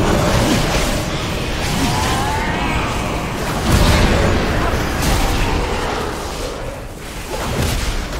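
A man talks through a headset microphone.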